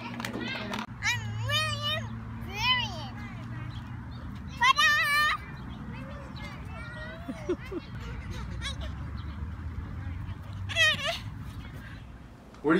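A young child shouts and squeals excitedly outdoors.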